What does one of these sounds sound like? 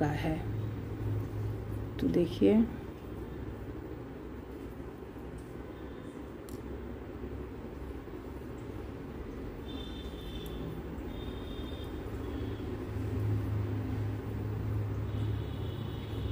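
Metal knitting needles click and scrape softly against yarn.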